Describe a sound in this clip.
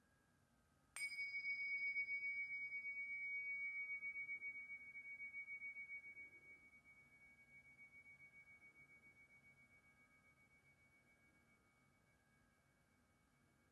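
Two small hand cymbals strike together once and ring with a clear, high tone that slowly fades away.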